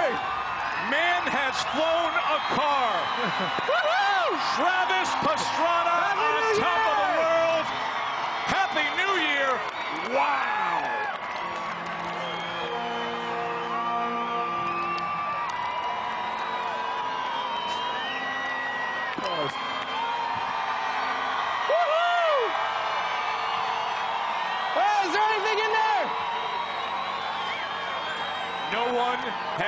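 A crowd whistles shrilly.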